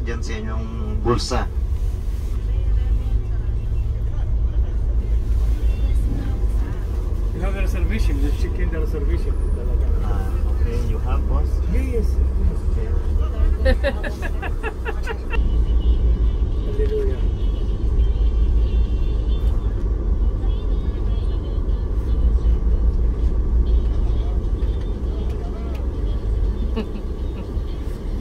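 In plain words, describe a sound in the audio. A car engine hums low and steady from inside a slowly moving car.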